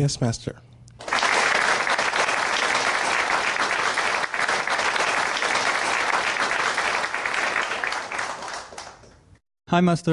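A large audience applauds steadily, then the clapping fades.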